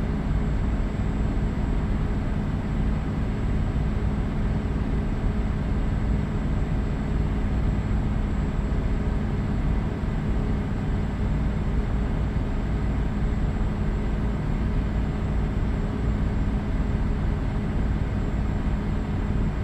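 A truck engine hums steadily while cruising.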